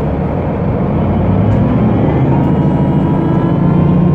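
A diesel city bus engine pulls away, rising in pitch.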